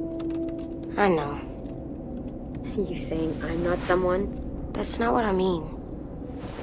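A young boy speaks quietly and sadly.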